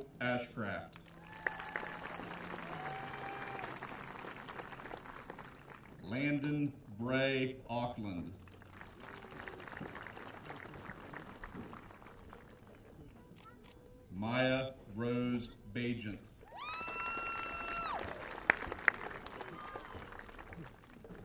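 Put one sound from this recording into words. An audience applauds and cheers in the distance.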